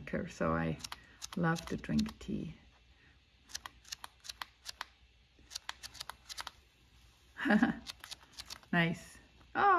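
Sheets of paper rustle and flap as a hand flips through them.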